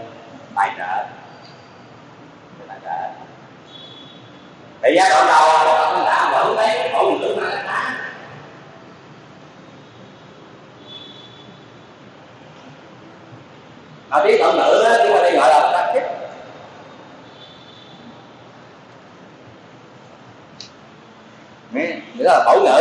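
An elderly man speaks calmly into a microphone, in short bursts with long pauses.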